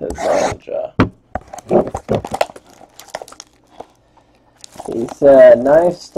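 Plastic wrap crinkles and tears as hands open a box.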